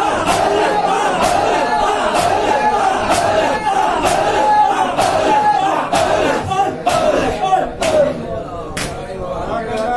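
Men beat their chests in a steady rhythm of loud slaps.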